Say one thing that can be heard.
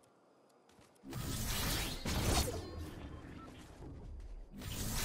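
Air rushes loudly as a figure is launched into the air.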